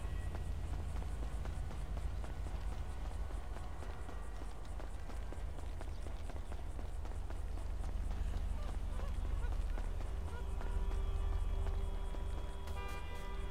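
Cars drive past on a nearby road with a low rumble.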